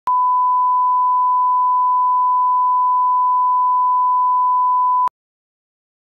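A steady high test tone beeps.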